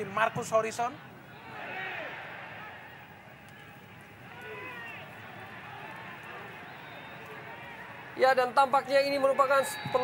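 A large crowd murmurs and roars in an open stadium.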